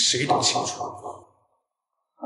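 A young man speaks quietly and coolly, close by.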